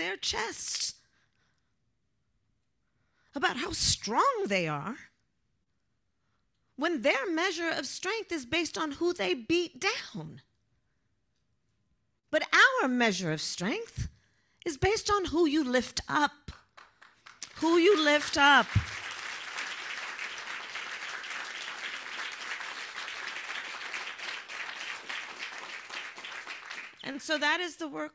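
A woman speaks with animation into a microphone, heard through loudspeakers.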